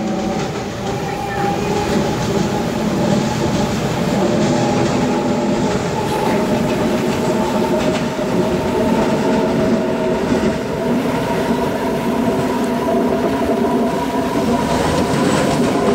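An electric train's traction motors whine as it runs.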